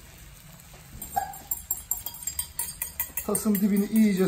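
Egg sizzles and crackles in a hot pan.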